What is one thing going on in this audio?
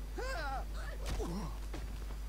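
A punch lands with a heavy thud.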